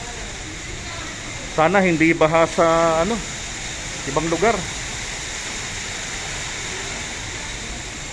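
Motorbikes and cars drive through flooded water.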